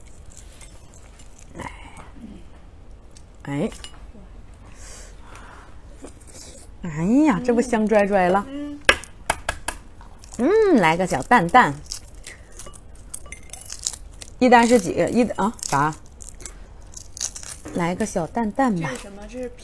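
Eggshells crack and crinkle as an egg is peeled.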